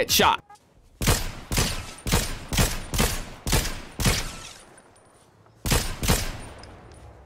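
A rifle fires a series of sharp single shots.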